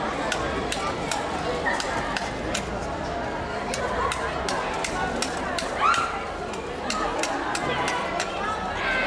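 A knife clicks and scrapes against a metal container.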